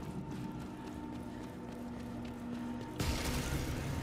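Footsteps run across gritty stone.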